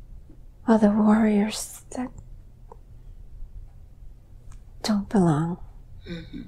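An older woman groans and moans in pain close by.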